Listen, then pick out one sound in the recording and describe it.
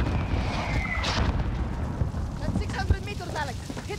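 An explosion booms from a game.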